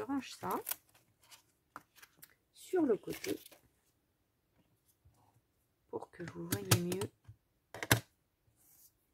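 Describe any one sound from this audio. Plastic stamp sheets rustle and crinkle.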